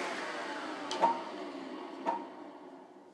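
Small wooden pieces knock on a table.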